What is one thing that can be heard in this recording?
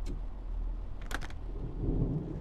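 A train door clicks and slides open.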